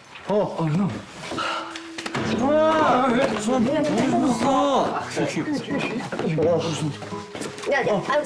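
Two young men grunt and shout as they scuffle.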